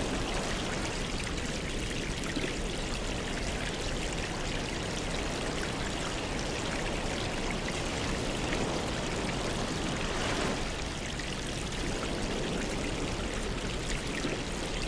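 Air bubbles rise and burble steadily in water.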